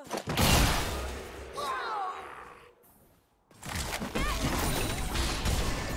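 Video game combat sounds of spells and hits crackle and boom in bursts.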